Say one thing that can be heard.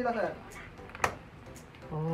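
A washing machine door latch clicks open.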